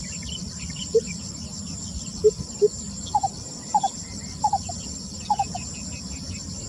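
A bird calls nearby with short, deep hoots.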